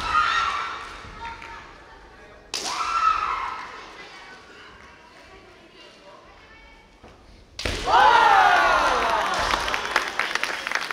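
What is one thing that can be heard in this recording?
Young men shout sharp, drawn-out cries in a large echoing hall.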